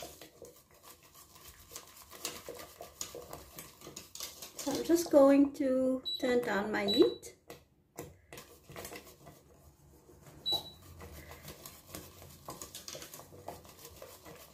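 A whisk scrapes and taps against a metal pot as thick liquid is stirred.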